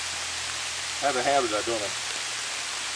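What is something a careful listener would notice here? An older man speaks briefly and calmly nearby.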